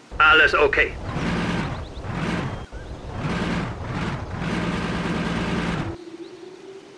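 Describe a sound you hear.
Tank engines rumble and rev in bursts.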